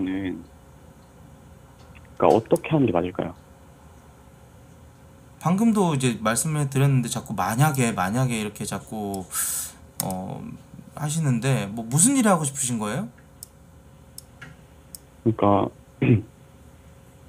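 A young man talks casually and with animation, close to a microphone.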